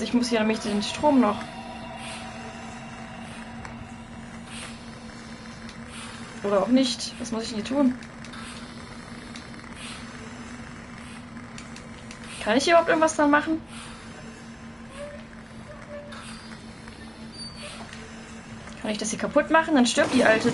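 A young woman speaks through a microphone in short bursts.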